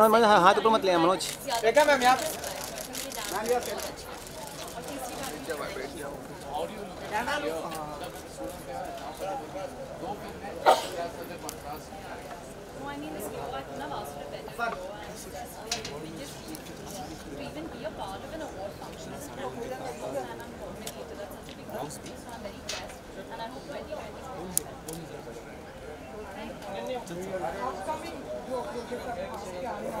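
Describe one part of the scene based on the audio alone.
A crowd chatters and calls out nearby.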